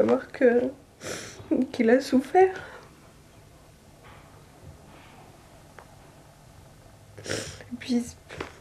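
A young woman sobs and sniffles.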